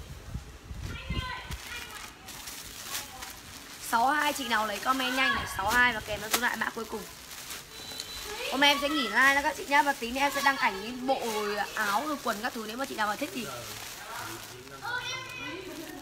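Plastic wrapping rustles and crinkles.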